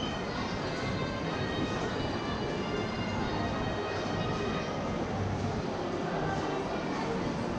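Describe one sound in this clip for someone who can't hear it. Footsteps of passers-by tap on a hard floor.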